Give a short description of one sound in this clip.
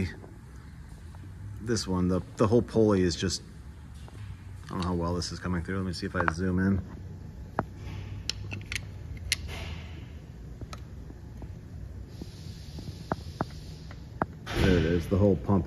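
A metal tool clicks and taps against engine parts.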